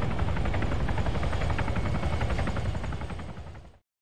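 A helicopter flies by overhead with a thudding rotor.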